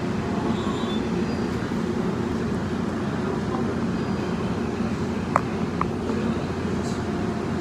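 A subway train rumbles and rattles steadily as it moves through a tunnel.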